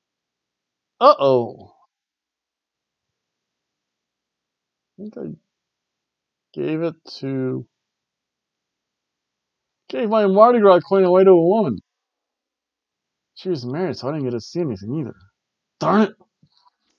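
A man speaks close to a microphone in short bursts, with animation.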